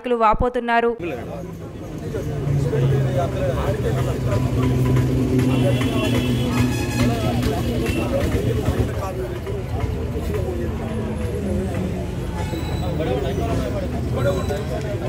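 A crowd of men and women murmur and talk at once nearby.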